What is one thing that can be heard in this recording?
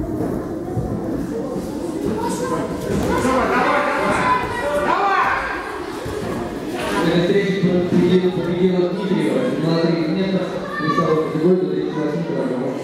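Bare feet shuffle and thump on a mat.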